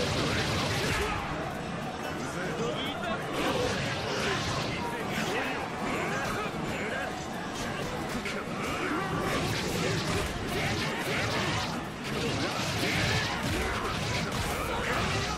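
Punches, slashes and energy blasts from a fighting game crack and thump rapidly.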